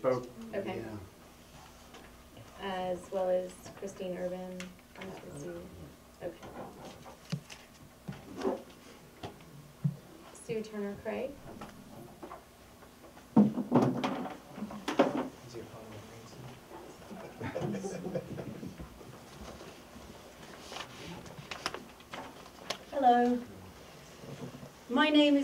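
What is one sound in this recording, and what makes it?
A woman speaks calmly at a distance, in a room with a slight echo.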